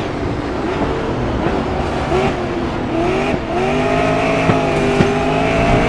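Tyres squeal around a corner.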